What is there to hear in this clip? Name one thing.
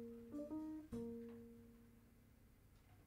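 A saxophone plays a few short notes, ringing out in a hall.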